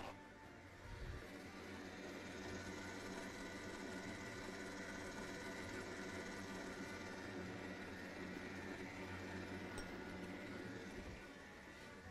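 An electric stand mixer whirs steadily.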